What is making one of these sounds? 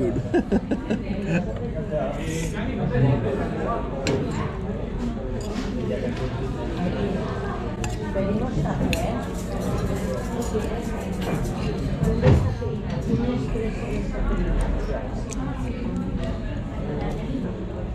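A fork clinks and scrapes against a ceramic plate.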